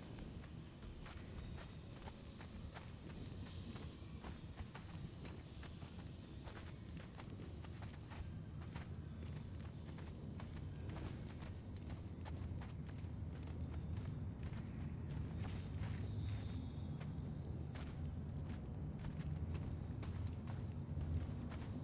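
Footsteps crunch over rubble.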